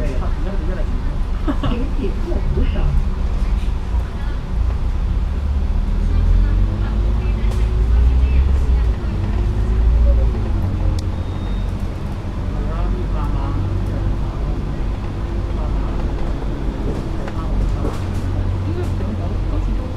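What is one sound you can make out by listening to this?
A diesel double-decker bus engine rumbles and whines, heard from inside as the bus drives.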